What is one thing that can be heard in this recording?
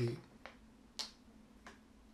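Small plastic pieces click onto a table.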